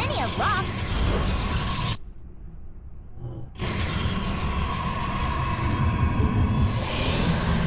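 Sci-fi energy weapons blast and crackle in a noisy battle.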